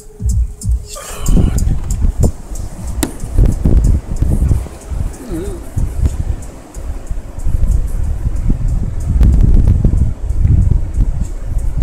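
Wind buffets the microphone outdoors with a low, gusty rumble.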